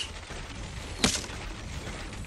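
A building piece snaps into place with a sharp thud.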